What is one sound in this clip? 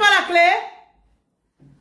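A young woman sings out loudly, close by.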